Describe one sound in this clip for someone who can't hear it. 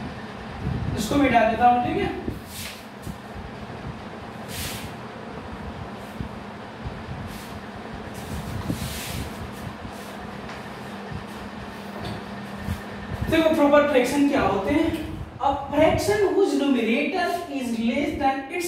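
A man speaks calmly in a lecturing voice nearby.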